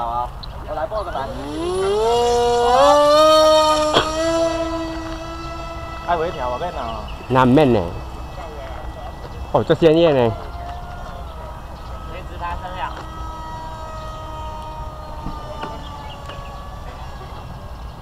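An electric motor whines, rising quickly in pitch, then hums steadily and slowly fades.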